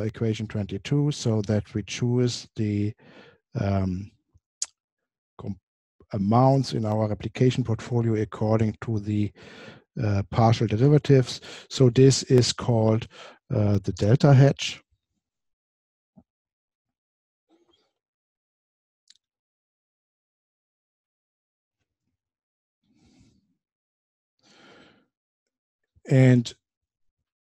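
A man lectures calmly into a close microphone.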